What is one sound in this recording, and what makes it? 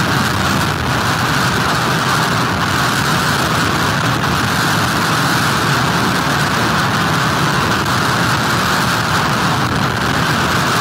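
Strong wind roars steadily outdoors.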